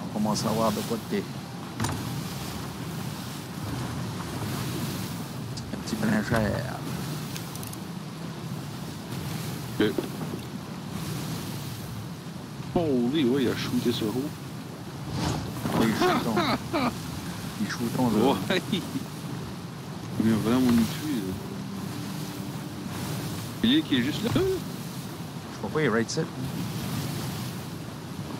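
Stormy waves surge and crash steadily against a wooden ship.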